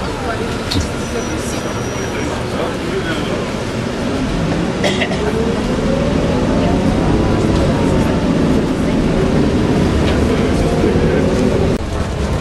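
A bus engine hums loudly and rises in pitch as the bus pulls away.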